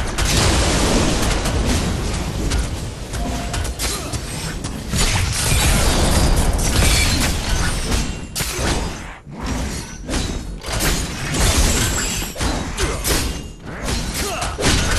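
Gunfire and blasts crackle in rapid bursts.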